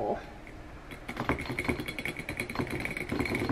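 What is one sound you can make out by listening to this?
A plastic stick scrapes and clinks against the inside of a glass bottle.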